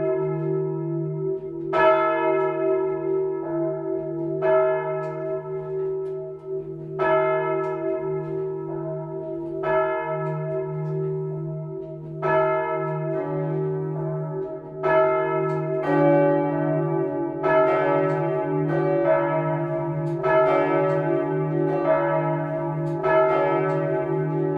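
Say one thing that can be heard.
Several large church bells of different pitch swing and are struck by their clappers close by, in overlapping peals.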